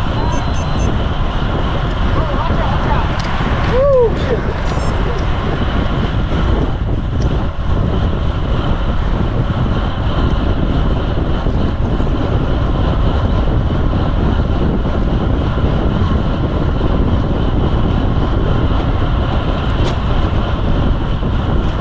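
Wind rushes loudly past a moving bicycle outdoors.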